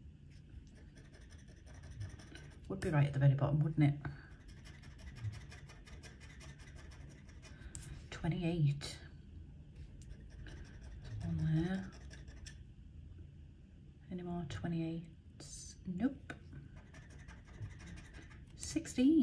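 A pen scratches and scrapes at a scratch card.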